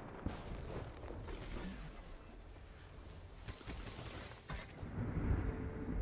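Video game spells whoosh and burst in a fight.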